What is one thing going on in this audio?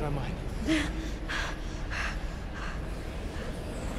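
A man speaks tensely nearby.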